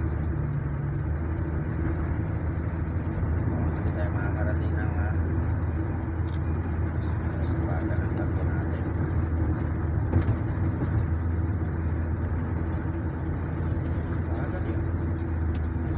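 A small fan whirs steadily close by.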